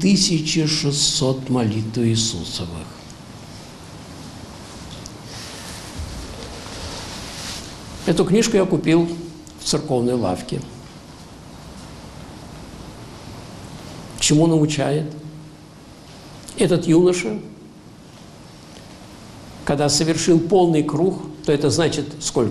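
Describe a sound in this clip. An elderly man speaks slowly into a microphone, with long pauses, in an echoing hall.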